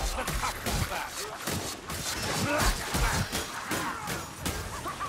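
Heavy blows thud and slash into flesh again and again.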